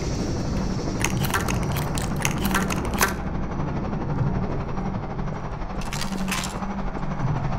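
A shotgun is pumped and reloaded with metallic clicks.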